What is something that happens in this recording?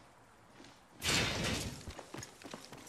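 A metal door slides open with a loud whoosh.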